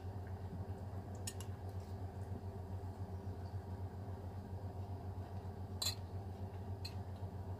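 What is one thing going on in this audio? A woman chews food close to the microphone.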